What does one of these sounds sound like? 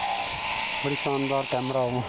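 A sheep bleats loudly nearby.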